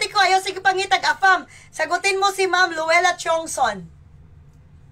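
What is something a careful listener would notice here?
A woman speaks cheerfully and with animation, close by.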